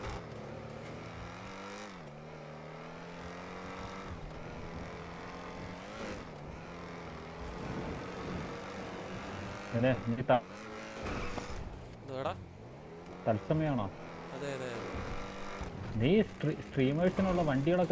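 A sports car engine roars at high speed, its pitch dropping and climbing again with each gear change.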